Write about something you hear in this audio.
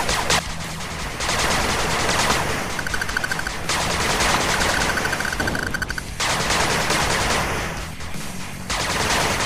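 Machine guns fire in long rapid bursts.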